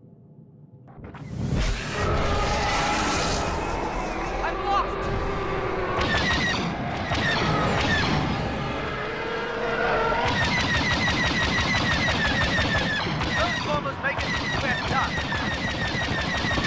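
Starfighter engines roar loudly.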